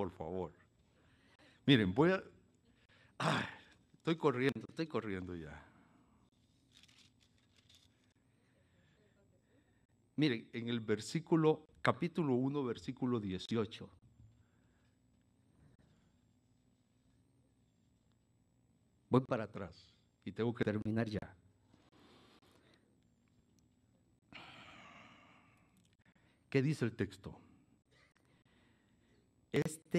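An elderly man preaches with animation through a microphone, with pauses between phrases.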